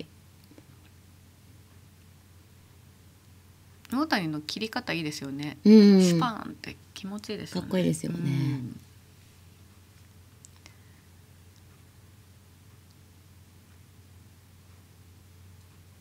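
Mahjong tiles click softly against a table.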